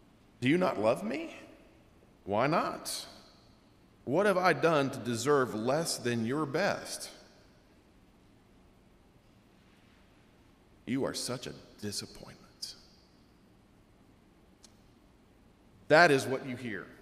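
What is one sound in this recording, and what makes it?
A man speaks calmly and clearly into a microphone, with pauses.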